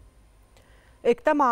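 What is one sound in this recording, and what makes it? A woman speaks clearly into a microphone, like a news presenter.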